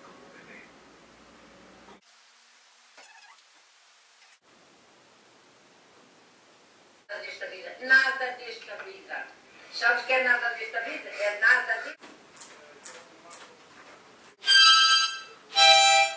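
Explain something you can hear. A television plays sound from a nearby speaker.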